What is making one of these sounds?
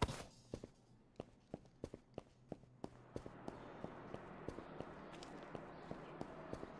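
Footsteps walk at a steady pace on hard ground.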